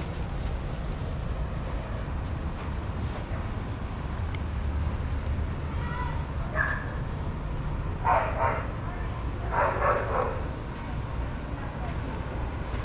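Dogs' paws pad and scuff softly on sandy ground.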